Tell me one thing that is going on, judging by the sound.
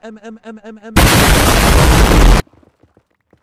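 A huge explosion roars.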